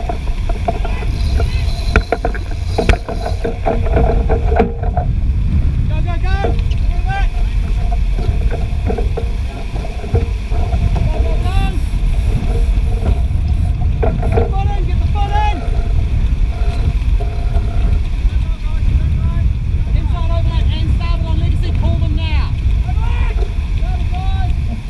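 Water rushes and splashes along the hull of a sailing keelboat.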